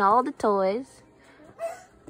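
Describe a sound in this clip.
A young girl speaks in a high voice.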